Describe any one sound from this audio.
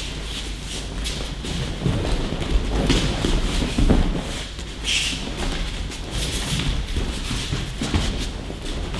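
Bare feet shuffle and slide across mats.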